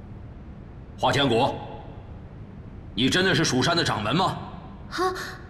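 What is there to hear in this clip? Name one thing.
A young woman speaks clearly.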